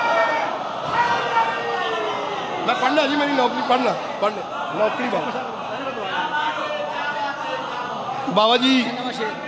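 A man chants loudly and emotionally into a microphone, heard over loudspeakers.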